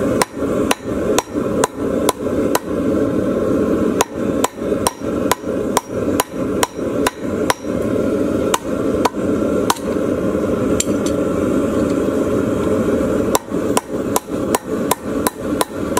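A hammer strikes hot metal on an anvil with sharp ringing clangs.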